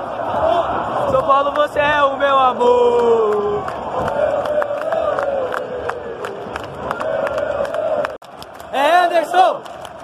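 Fans clap their hands.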